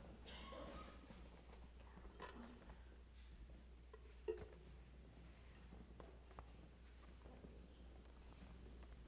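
Footsteps shuffle softly across a floor in a large, echoing room.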